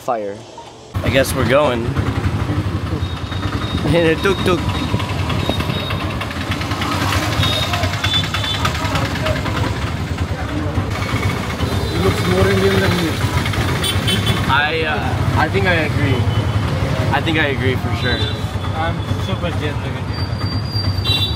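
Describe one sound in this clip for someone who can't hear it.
An auto-rickshaw engine rattles loudly.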